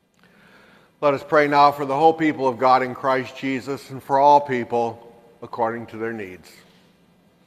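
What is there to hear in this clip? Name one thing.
A man speaks clearly in a large echoing hall.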